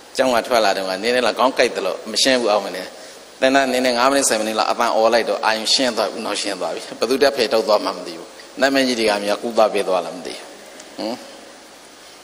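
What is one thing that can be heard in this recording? A middle-aged man speaks calmly and warmly into a microphone.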